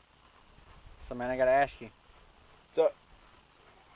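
A young man speaks casually up close.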